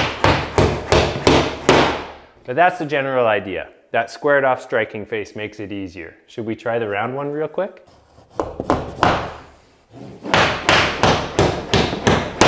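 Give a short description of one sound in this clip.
A hammer bangs repeatedly against a wall.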